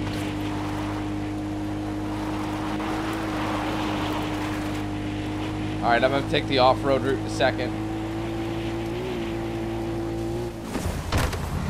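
A quad bike engine hums steadily.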